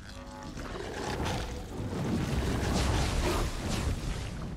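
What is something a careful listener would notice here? A fiery explosion bursts with a deep roar.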